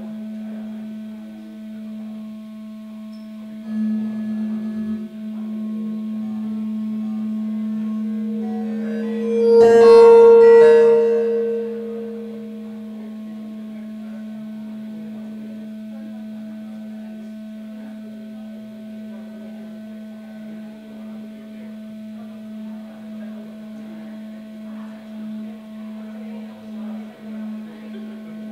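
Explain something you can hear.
An electric guitar plays a sustained, droning note through an amplifier.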